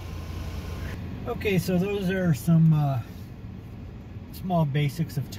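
A car engine hums while driving.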